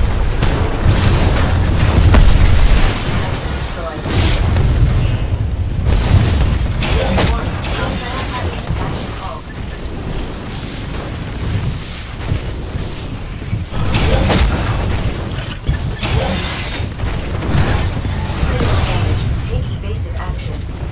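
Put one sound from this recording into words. Heavy gunfire booms in rapid bursts.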